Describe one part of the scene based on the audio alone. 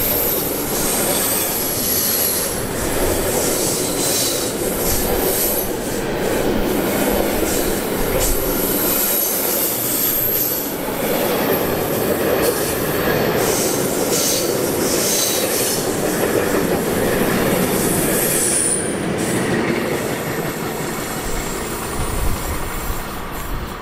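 A freight train rumbles past close by, its wagons clattering over the rails.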